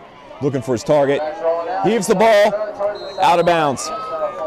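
A crowd cheers and yells.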